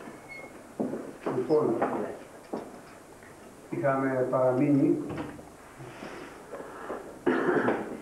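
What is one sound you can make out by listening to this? An elderly man speaks slowly in a room with some echo.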